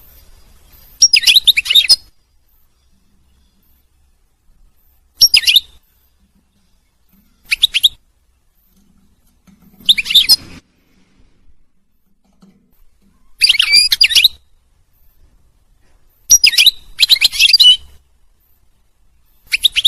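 A small bird sings in short bursts of bright, rapid twittering close by.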